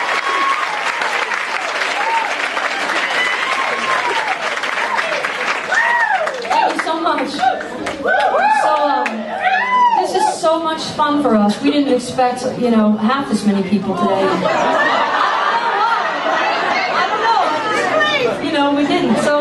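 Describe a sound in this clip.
A crowd chatters and murmurs in a lively room.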